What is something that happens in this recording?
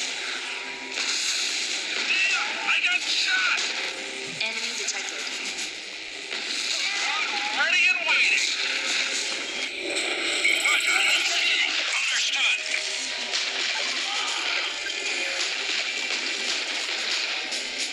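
Explosions and gunfire crackle in a battle.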